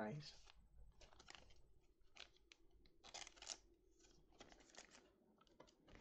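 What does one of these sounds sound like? A plastic card sleeve crinkles softly as a card slides out.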